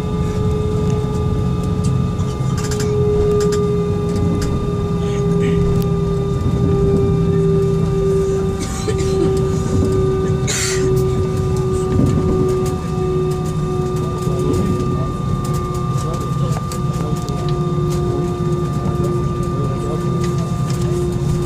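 A jet engine hums loudly and steadily from inside an aircraft cabin.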